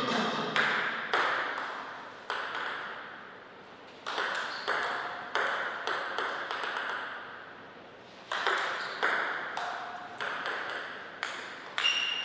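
A ping-pong ball clicks sharply back and forth off paddles and a table, echoing in a large hall.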